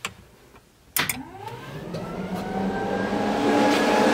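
A car engine cranks and starts.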